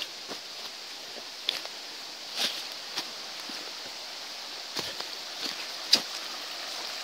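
Footsteps crunch on dirt and dry leaves.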